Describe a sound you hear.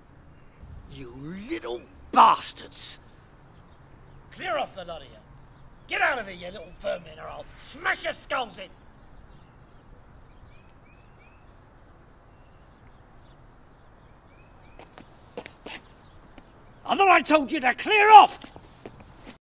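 A middle-aged man speaks close by, with animation.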